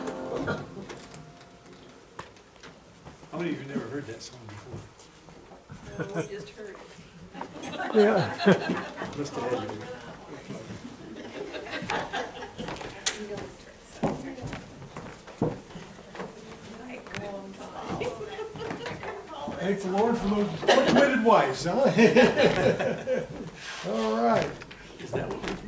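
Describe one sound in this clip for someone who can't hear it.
An older man talks casually in an echoing room.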